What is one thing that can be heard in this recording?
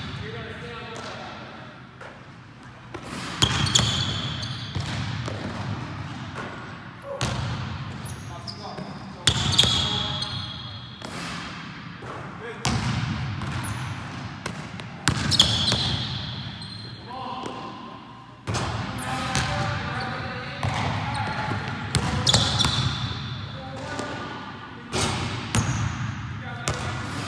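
A basketball bounces on a wooden floor in a large echoing hall.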